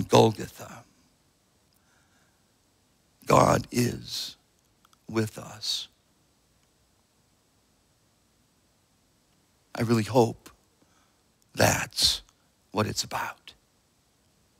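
A middle-aged man speaks slowly and calmly into a microphone, with long pauses.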